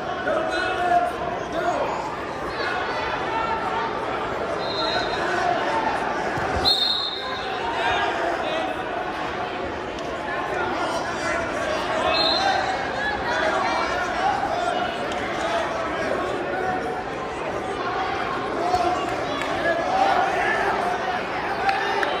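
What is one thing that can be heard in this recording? A crowd chatters steadily in a large echoing hall.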